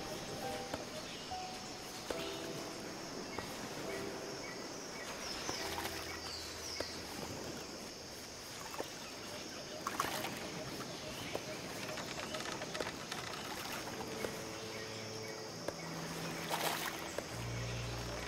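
Waves wash steadily over open water.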